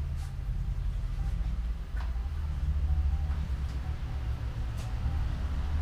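Metal tools clink and tap against a bicycle.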